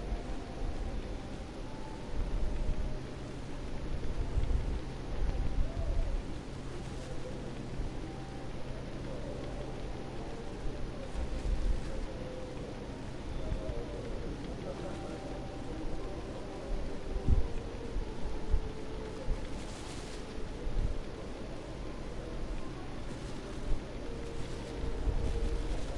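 Footsteps crunch slowly on a path.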